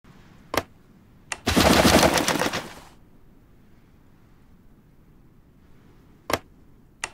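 A game menu gives short clicks as options are chosen.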